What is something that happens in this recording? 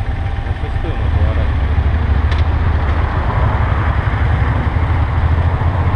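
A motorcycle engine grows louder as the bike pulls away.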